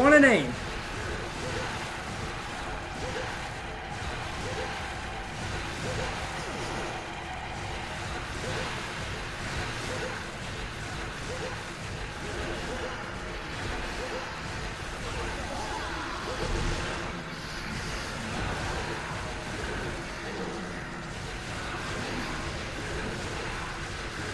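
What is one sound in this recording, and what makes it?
A sword slashes and clangs against a monster in quick strikes.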